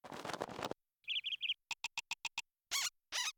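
A small bird chirps in quick short bursts.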